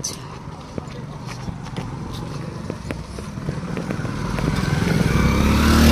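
A motorcycle engine approaches, growing steadily louder.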